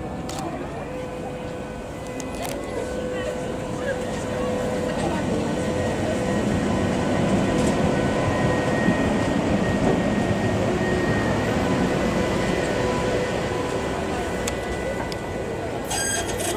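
A tram's motor whines steadily as it passes.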